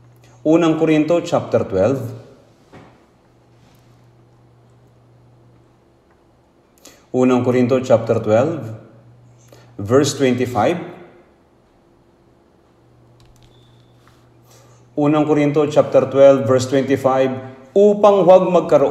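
An elderly man speaks slowly and solemnly into a microphone, with pauses.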